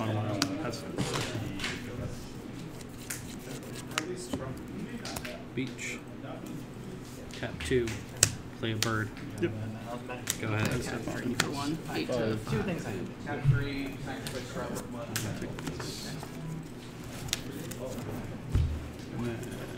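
Playing cards tap softly as they are laid down on a mat.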